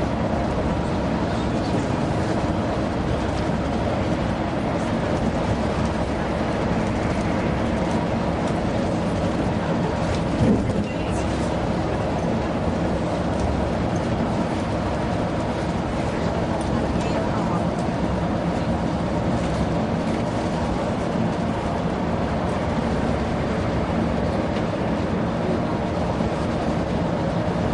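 A vehicle's engine hums steadily.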